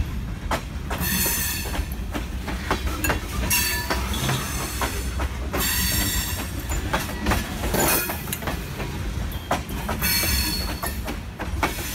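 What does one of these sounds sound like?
Metal wheels squeal against the rails.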